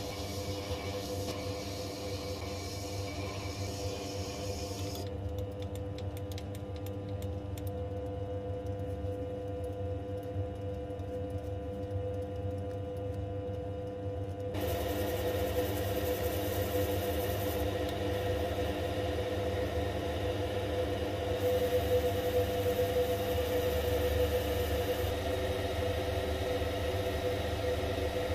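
A lathe motor hums steadily throughout.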